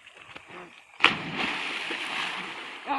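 A body splashes loudly into water.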